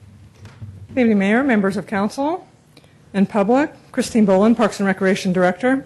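A woman speaks clearly into a close microphone.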